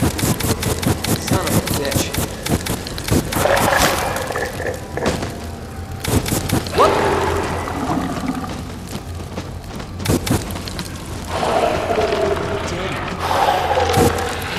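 A flamethrower roars, with flames crackling loudly.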